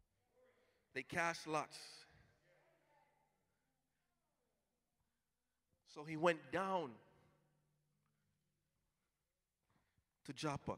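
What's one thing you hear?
A man preaches loudly and with passion through a microphone in a large echoing hall.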